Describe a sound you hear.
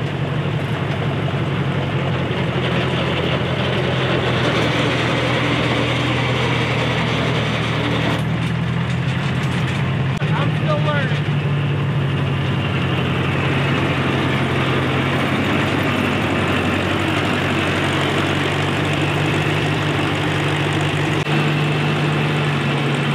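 An old combine harvester engine rumbles and clatters steadily nearby.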